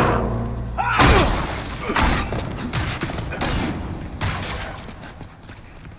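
A magical blast bursts with a loud crackling whoosh.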